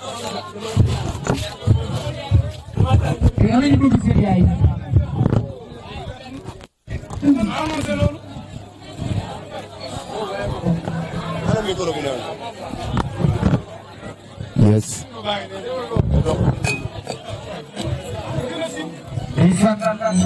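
A young man sings into a microphone.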